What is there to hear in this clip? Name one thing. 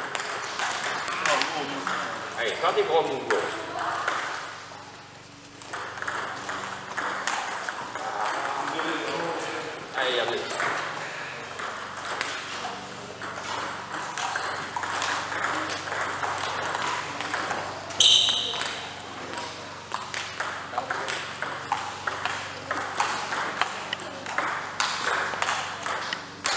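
Table tennis balls click rapidly against paddles and tables in a large echoing hall.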